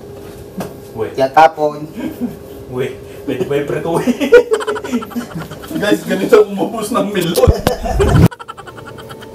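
A man talks cheerfully and laughs close by.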